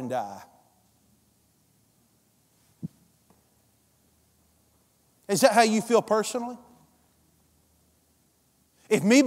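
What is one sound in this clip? A middle-aged man speaks with animation through a headset microphone, pausing between phrases.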